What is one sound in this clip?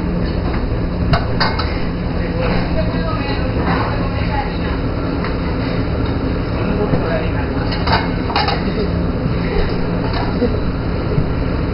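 Plates clink and clatter as they are stacked.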